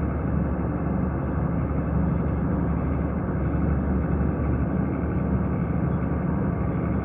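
A vehicle engine hums steadily while driving.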